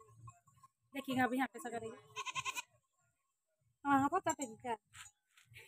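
A goat bleats close by.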